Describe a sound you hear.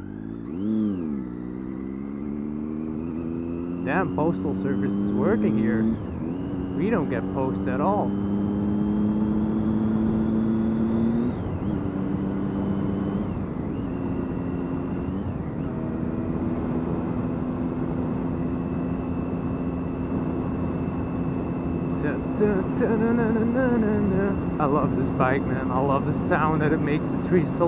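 A motorcycle engine hums steadily, rising and falling in pitch as it shifts gears.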